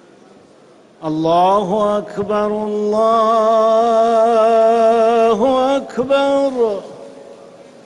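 A man chants a long, wavering call through loudspeakers, echoing in the open air.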